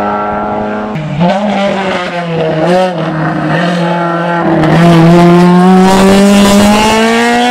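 A third rally car engine screams loudly as it accelerates past.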